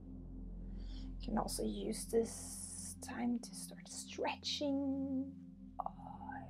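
A young woman whispers softly, close to the microphone.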